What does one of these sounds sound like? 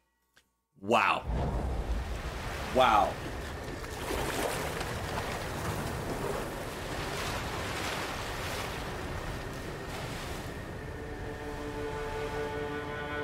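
Water washes and laps steadily.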